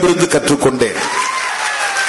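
A person claps hands.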